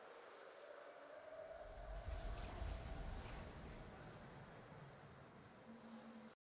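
A triumphant victory fanfare plays with a deep booming swell.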